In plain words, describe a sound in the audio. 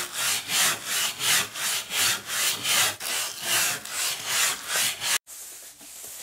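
A brush scrubs rapidly against a crusty surface.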